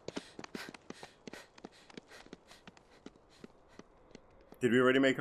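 Quick footsteps patter on a dirt path.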